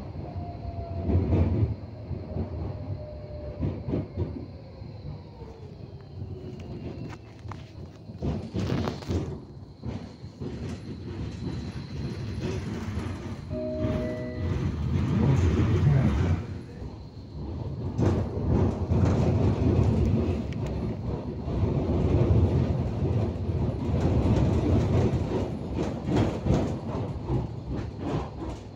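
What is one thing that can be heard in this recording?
A tram rumbles along its rails with a low, steady drone.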